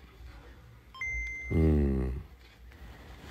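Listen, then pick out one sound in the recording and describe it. A handheld game console plays a short, bright startup chime.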